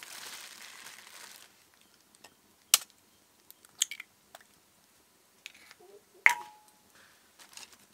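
An egg cracks and drops into a bowl.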